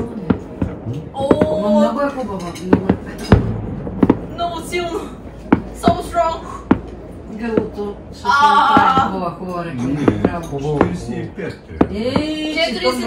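An older woman talks casually nearby.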